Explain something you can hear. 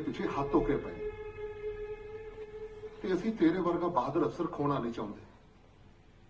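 A middle-aged man speaks calmly and firmly.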